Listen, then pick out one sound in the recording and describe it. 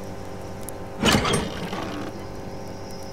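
A wooden storage box is opened with a clattering thud.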